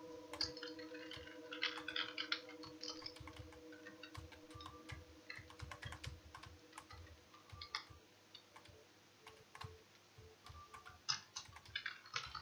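Electronic game sound effects blip and click.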